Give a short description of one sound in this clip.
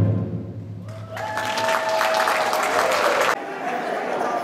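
A brass band plays loudly in a large echoing hall.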